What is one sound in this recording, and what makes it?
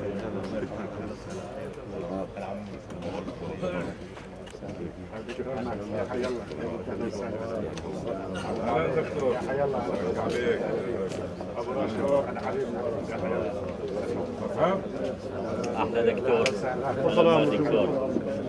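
A crowd of men chatter and greet each other nearby, outdoors.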